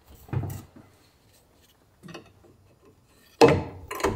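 A wooden block knocks down onto a metal table.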